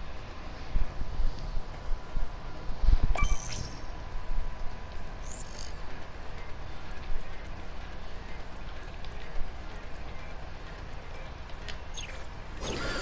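Game menu sounds chime and whoosh.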